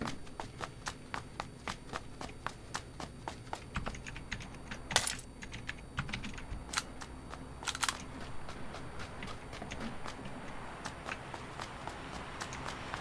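Footsteps thud quickly and evenly on a hard floor.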